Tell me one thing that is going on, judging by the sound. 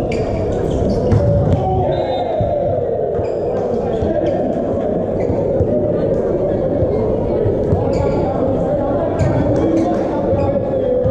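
Sports shoes squeak on a court floor.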